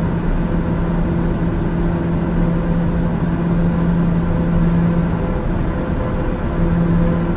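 A turboprop engine drones steadily in cruise, heard from inside the cockpit.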